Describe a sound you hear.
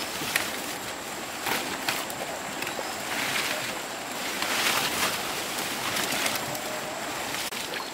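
Leaves rustle as plants are handled.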